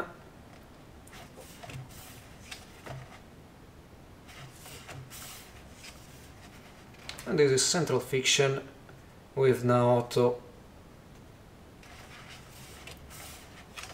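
Paper pages of a book rustle as they are turned.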